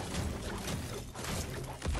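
A pickaxe chops repeatedly at ice.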